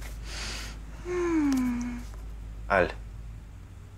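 A young woman speaks softly and playfully close by.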